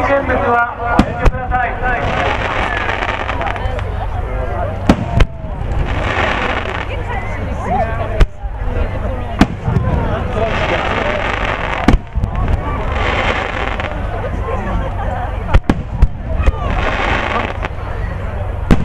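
Fireworks burst with loud booms.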